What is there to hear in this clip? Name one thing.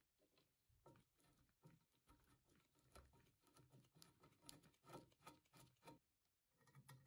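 A screwdriver squeaks and ticks as it turns a small screw.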